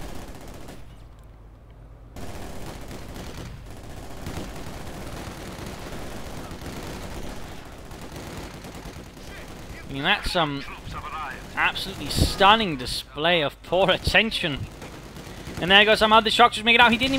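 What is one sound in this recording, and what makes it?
Gunfire crackles in a distant battle.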